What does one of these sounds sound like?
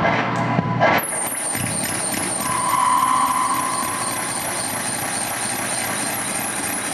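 A high electronic tone sweeps upward over and over in a quick repeating pattern.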